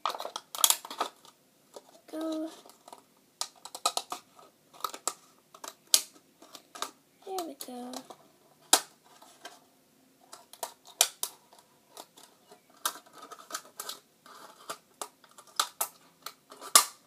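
Scissors snip through thin plastic.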